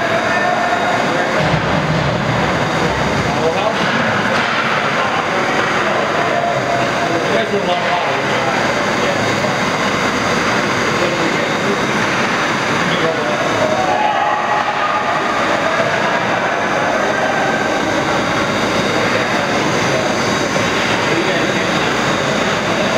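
Ice skates scrape across ice.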